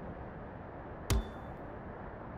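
A sharp electronic click sounds as a prompt pops up.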